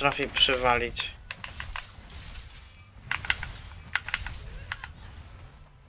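A blade swishes and strikes in quick slashes.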